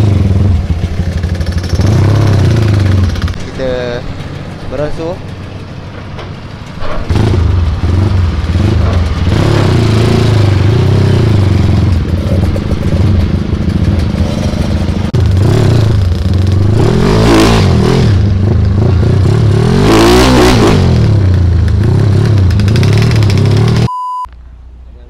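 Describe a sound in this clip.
A motorcycle engine revs loudly close by, rising and falling.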